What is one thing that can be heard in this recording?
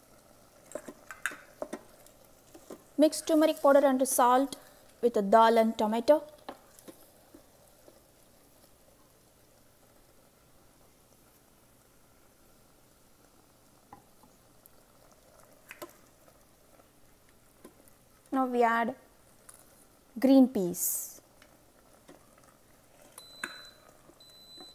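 A wooden spoon stirs and scrapes food in a metal pot.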